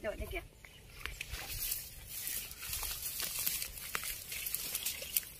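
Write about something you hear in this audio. Leaves rustle as plants are pulled from the water.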